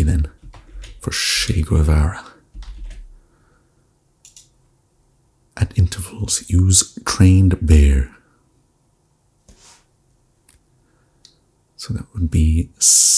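A young man speaks calmly and thoughtfully into a close microphone.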